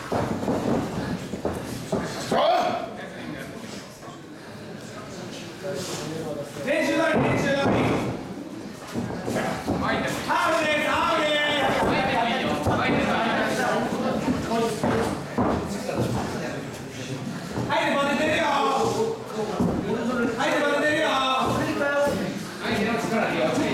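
Feet shuffle and thud on a wrestling ring's mat.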